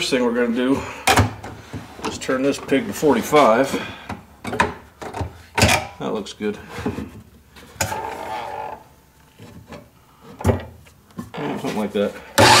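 A wooden board knocks against a saw table.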